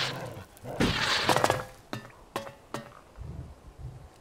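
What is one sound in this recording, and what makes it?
Boots clatter on a corrugated metal roof.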